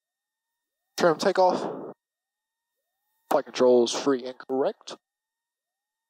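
A young man speaks with animation, close to a headset microphone.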